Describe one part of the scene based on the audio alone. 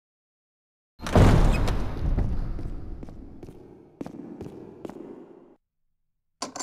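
A heavy door slams shut and booms through a large echoing hall.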